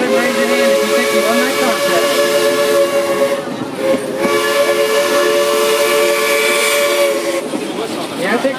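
A small open train clatters along its track.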